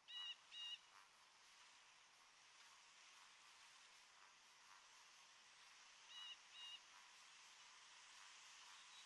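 Water washes gently against a shore.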